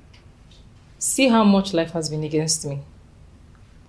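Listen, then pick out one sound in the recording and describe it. Another young woman answers in a worried, raised voice nearby.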